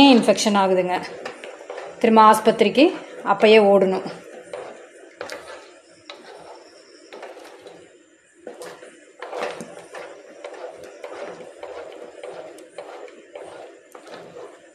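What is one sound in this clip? A wooden spatula scrapes and slaps through thick batter in a metal pan.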